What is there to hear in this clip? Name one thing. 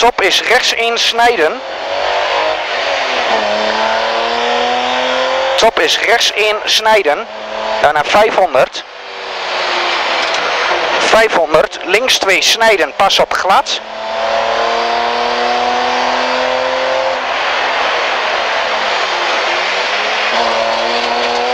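A rally car engine roars and revs up and down through the gears.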